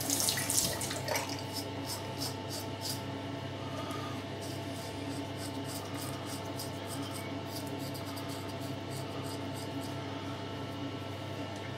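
A razor scrapes across stubble close by.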